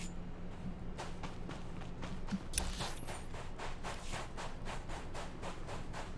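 Footsteps run quickly over sand.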